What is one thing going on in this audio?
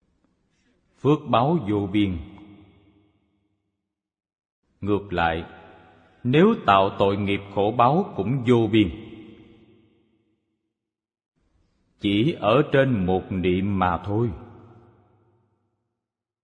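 An elderly man speaks slowly and with emphasis into a microphone, with pauses between phrases.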